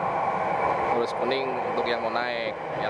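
A man speaks close to the microphone.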